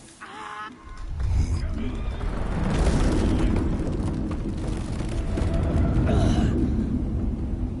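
A heavy stone slab grinds and rumbles as it moves.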